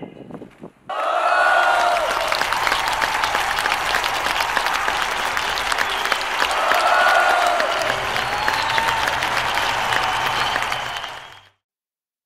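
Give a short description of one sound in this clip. A large crowd of young men and women cheers and shouts outdoors.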